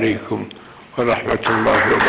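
An elderly man reads out through a microphone.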